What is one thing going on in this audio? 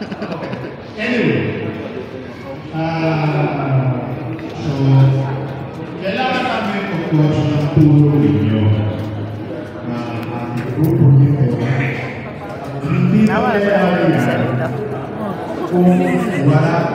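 An elderly man speaks through a microphone and loudspeaker with animation, echoing in a hard room.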